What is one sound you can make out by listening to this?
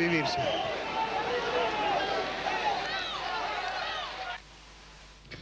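A crowd of people shout and talk over each other in a noisy commotion.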